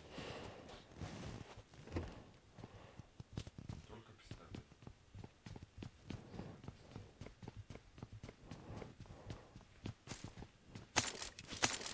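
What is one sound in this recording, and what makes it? Quick footsteps thud on a hard floor.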